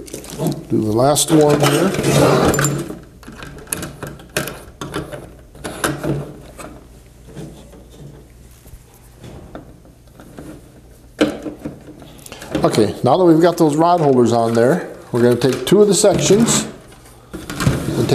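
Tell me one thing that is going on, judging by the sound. Plastic panels clatter and knock as they are handled.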